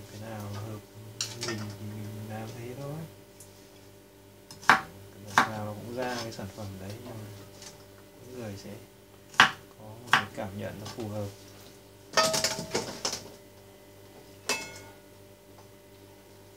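A metal spoon clinks against a bowl.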